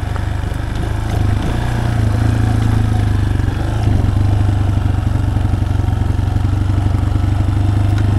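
A motorcycle engine putters steadily at low speed.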